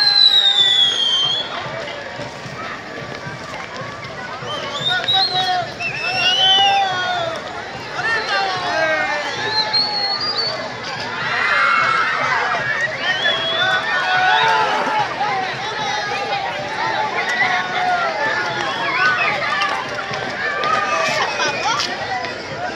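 A crowd of young men shout and cheer outdoors.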